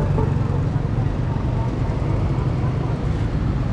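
A car engine rumbles as it drives past close by.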